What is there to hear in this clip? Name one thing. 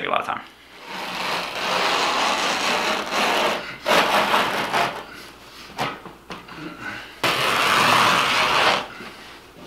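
A carpet cutter slices through carpet with a steady rasping.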